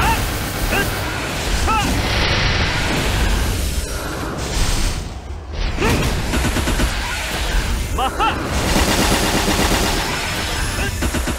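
Rapid magic blasts and sparkling chimes crackle without pause.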